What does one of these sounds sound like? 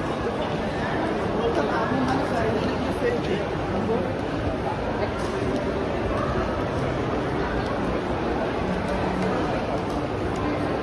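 Footsteps tap on a hard floor nearby.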